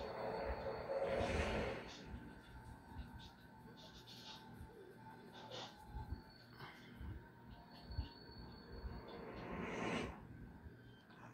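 A swooshing sound effect plays from a television speaker.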